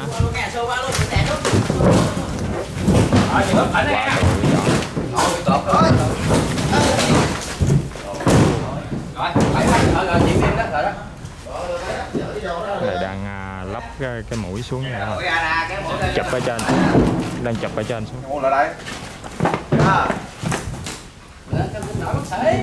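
Several men shout and call out to each other nearby.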